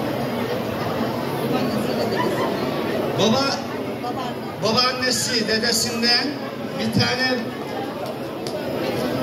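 A crowd of men and women chatters steadily nearby.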